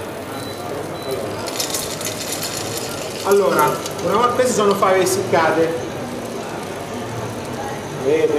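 A metal spoon scrapes and stirs in a pot.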